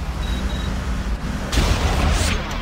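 Energy weapons fire with buzzing zaps.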